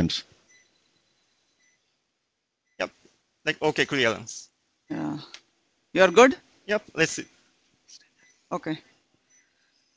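A man speaks calmly in short phrases with pauses.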